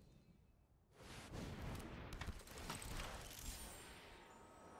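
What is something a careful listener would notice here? A fiery spell whooshes and bursts with a blast.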